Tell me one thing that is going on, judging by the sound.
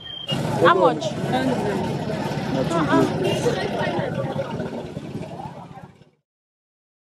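People chatter nearby at a busy outdoor market.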